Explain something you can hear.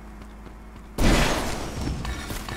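A rocket launcher fires with a loud blast.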